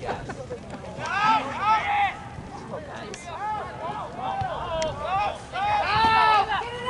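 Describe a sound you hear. Young people shout and cheer excitedly nearby, outdoors.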